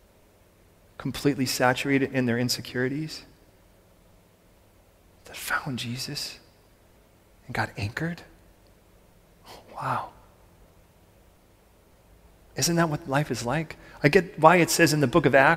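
A man speaks calmly into a microphone in a large echoing room, with pauses between phrases.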